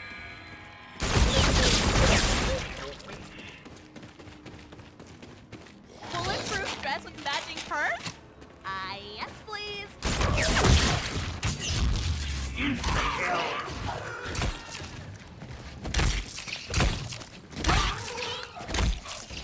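A gun fires bursts of loud shots.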